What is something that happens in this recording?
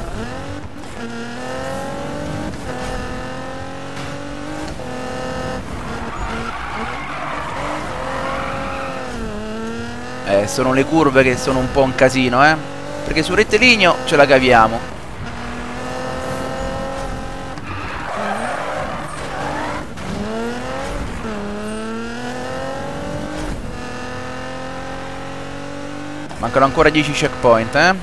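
A car engine revs high, rising in pitch and dropping with each gear change.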